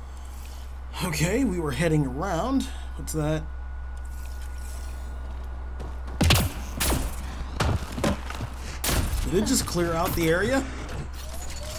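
A young man talks with animation, close to a headset microphone.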